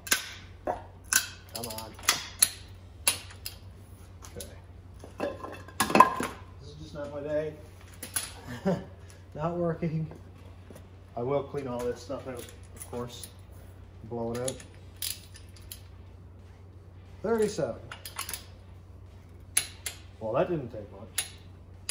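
A ratchet wrench clicks on a bolt.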